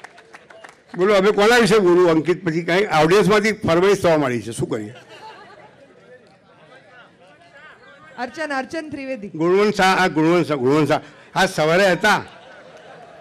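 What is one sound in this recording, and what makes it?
An elderly man speaks slowly and expressively through a microphone.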